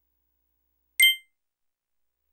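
A short, bright electronic chime rings once as a game menu option is chosen.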